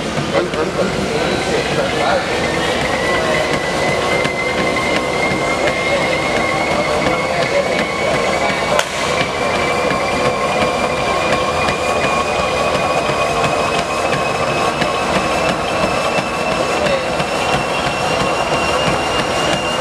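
A treadmill belt whirs steadily, slowly rising in pitch.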